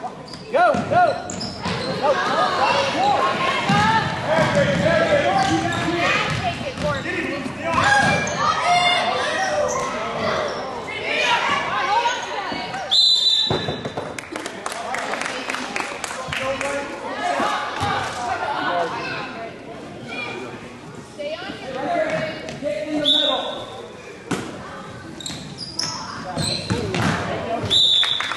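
Spectators in a crowd talk and cheer loudly in a large echoing gym.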